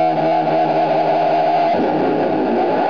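An electric guitar plays a distorted chord through an amplifier.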